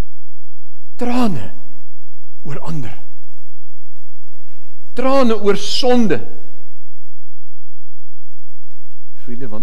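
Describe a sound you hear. A middle-aged man speaks with emphasis into a microphone, in short phrases with pauses.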